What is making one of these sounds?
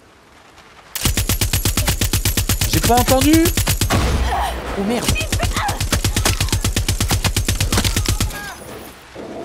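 A heavy machine gun fires long, rapid bursts close by.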